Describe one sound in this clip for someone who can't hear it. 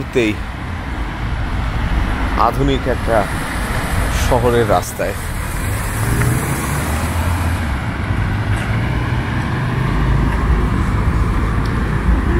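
Cars drive past on a street outdoors, their engines and tyres rumbling steadily.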